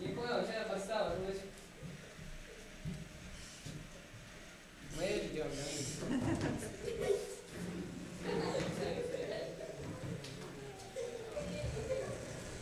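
Teenage boys talk casually nearby.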